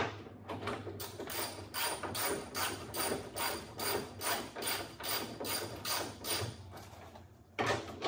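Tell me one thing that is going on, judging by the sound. A ratchet clicks rapidly as a bolt is undone.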